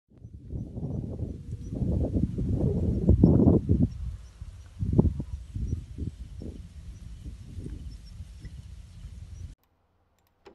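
Wind gusts loudly outdoors, buffeting against the microphone.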